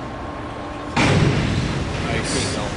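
A diver splashes into the water of an echoing indoor pool.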